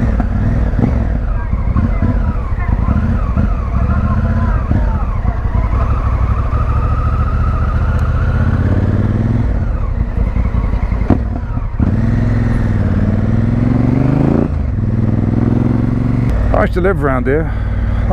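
A motorcycle engine rumbles and changes pitch as the rider speeds up and slows down.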